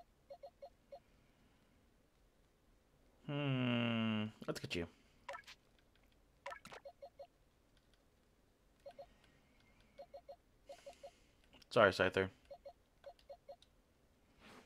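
Short electronic blips click in quick succession.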